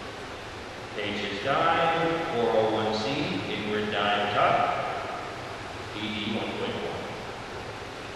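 A young girl speaks briefly in a large echoing hall.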